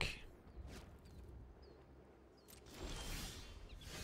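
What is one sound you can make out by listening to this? A digital card game plays a soft whoosh as a card is played.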